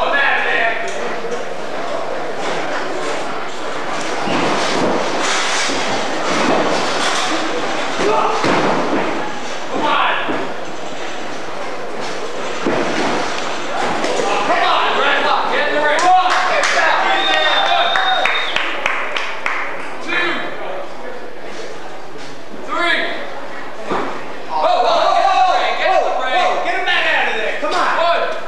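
A crowd cheers and shouts in an echoing hall.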